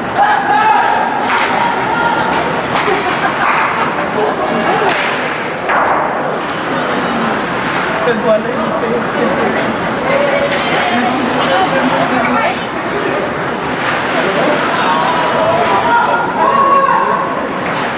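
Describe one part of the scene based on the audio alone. A crowd of spectators chatters and calls out in a large echoing arena.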